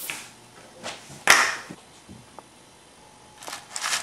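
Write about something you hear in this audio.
Plastic beads rattle in a plastic tub as a hand stirs them.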